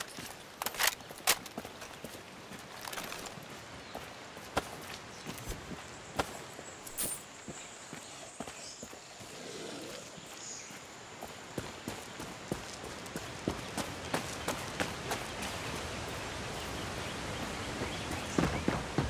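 Footsteps crunch on dirt and leaves.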